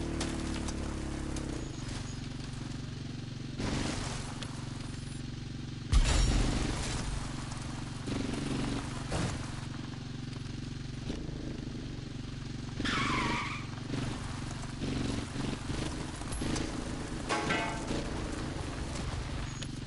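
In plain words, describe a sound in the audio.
A motorbike engine hums steadily at low speed.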